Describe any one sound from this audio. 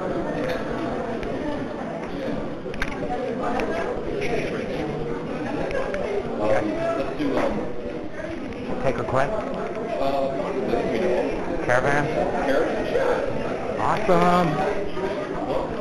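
A drum kit keeps a soft, steady beat.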